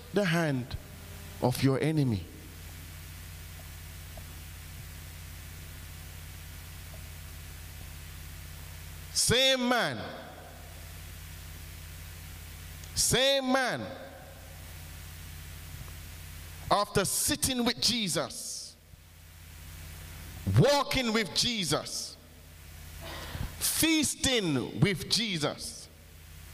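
A man preaches into a microphone in short, emphatic bursts with long pauses, heard through loudspeakers in a large room.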